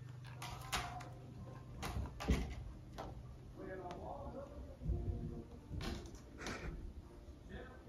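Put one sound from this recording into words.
A cat scrambles and claws its way up a cat tree with soft thumps and scratches.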